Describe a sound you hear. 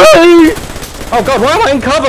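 A submachine gun fires a rapid burst.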